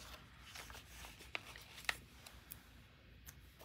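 Paper rustles and crinkles softly.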